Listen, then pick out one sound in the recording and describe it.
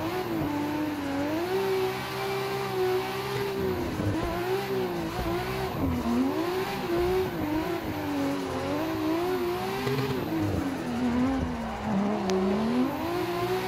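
A car engine revs hard, rising and falling quickly as gears change.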